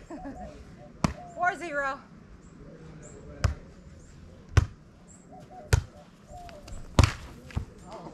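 A volleyball is struck by hand outdoors.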